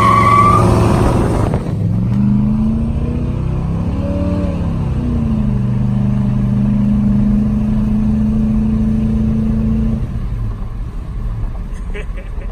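A big engine roars, revs up and down, then settles into a steady low drone.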